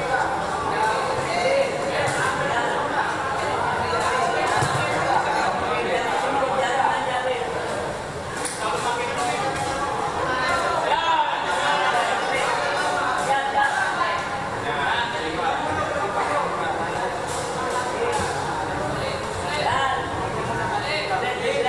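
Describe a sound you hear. A crowd of spectators chatters and shouts in an echoing hall.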